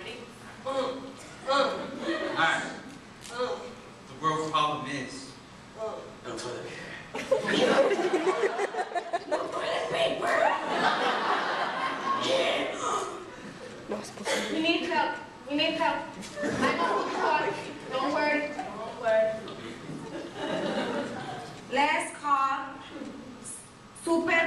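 Young actors speak loudly and with animation on a stage in an echoing hall.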